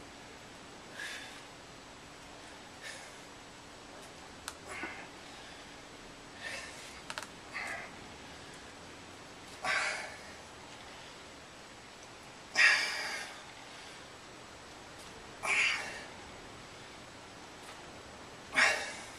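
A man breathes out hard in short bursts with each effort.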